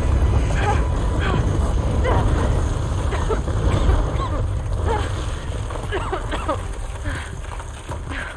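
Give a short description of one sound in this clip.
Thunder rumbles low and steady.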